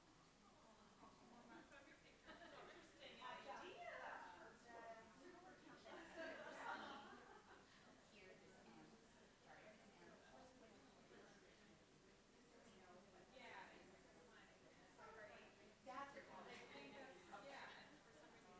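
Men and women chat nearby in a busy room.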